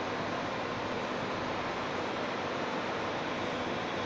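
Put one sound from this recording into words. Air bubbles stream and gurgle steadily in water.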